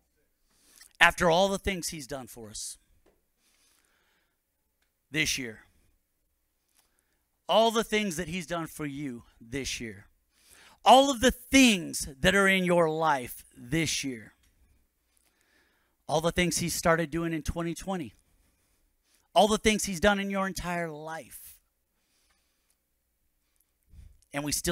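A man speaks with animation through a microphone, pausing often.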